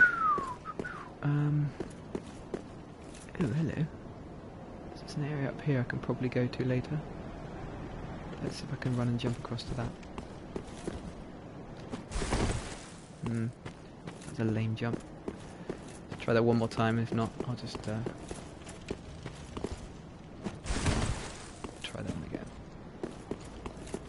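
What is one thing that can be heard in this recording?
Armored footsteps clatter quickly on stone.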